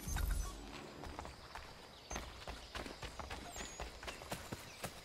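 Footsteps tread softly on forest ground.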